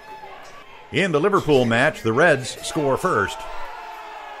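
A crowd of men cheers and shouts loudly.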